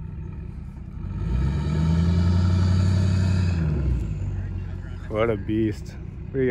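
A heavy diesel truck engine revs up loudly, then eases off.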